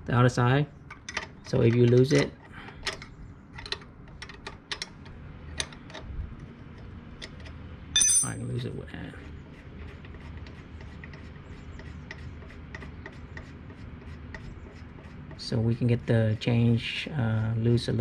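Small metal parts click and tap as a tool works on them.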